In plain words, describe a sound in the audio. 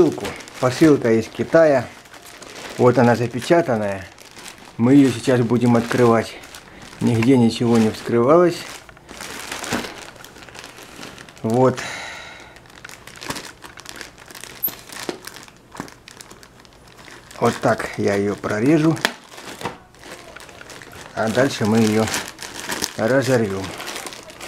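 A plastic mailer bag crinkles as it is handled.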